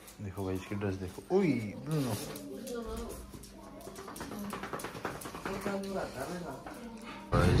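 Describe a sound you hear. A dog's claws click and patter on a hard tile floor.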